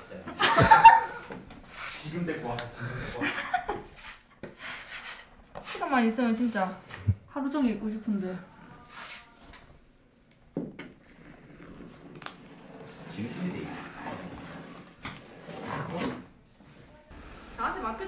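Paper rips and tears as wallpaper is peeled from a wall.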